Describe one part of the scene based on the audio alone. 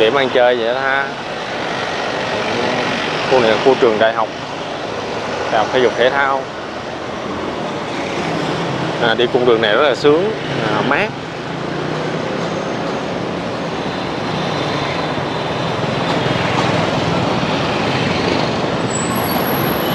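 Motorbikes and cars rumble past steadily along a busy street outdoors.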